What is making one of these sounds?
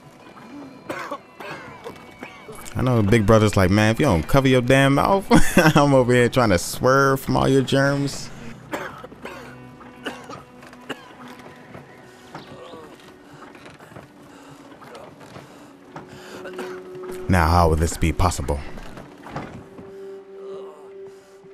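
Wooden cart wheels creak and rattle as the cart rolls along a path.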